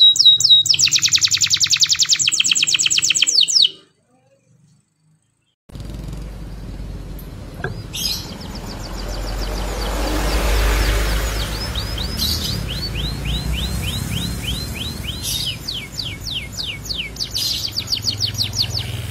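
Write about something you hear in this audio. A canary sings a loud, rapid trill close by.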